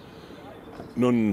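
An elderly man speaks calmly into a microphone outdoors.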